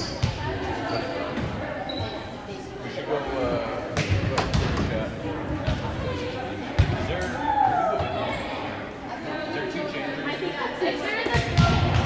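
Several young people chatter and call out in a large echoing hall.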